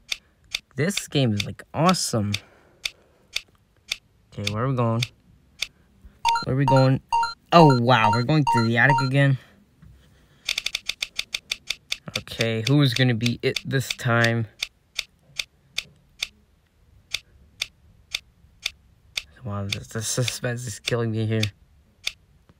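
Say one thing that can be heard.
Quick ticking clicks sound as a game's selection wheel spins.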